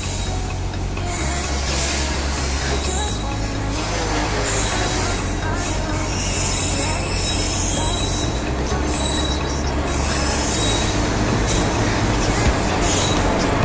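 An electric locomotive hums and rumbles steadily as it approaches.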